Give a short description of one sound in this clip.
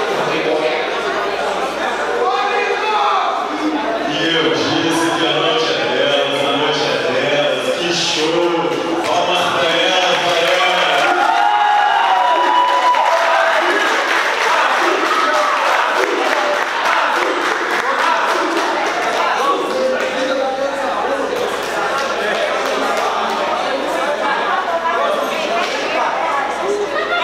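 A man announces loudly over a loudspeaker in an echoing hall.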